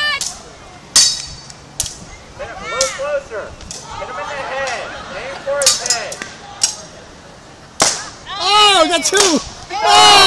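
Wooden sticks clack together in sharp knocks.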